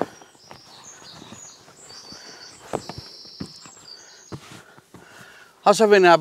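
Heavy cloth rustles as it is handled.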